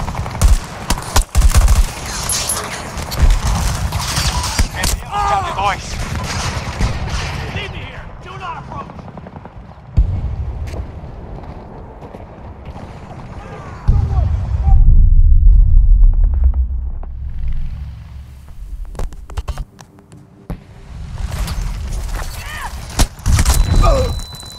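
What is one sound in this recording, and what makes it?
Automatic gunfire rattles in sharp bursts.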